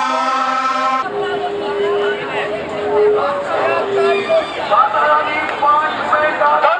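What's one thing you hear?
A crowd of people shouts and chants.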